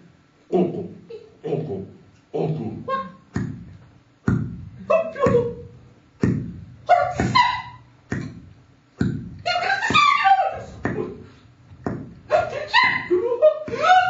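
A woman makes short, dramatic vocal sounds through a microphone in an echoing room.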